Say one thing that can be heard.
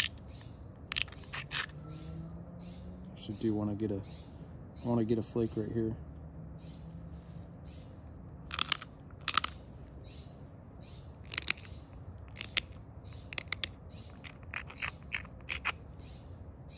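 A stone scrapes and clicks sharply against the edge of another stone.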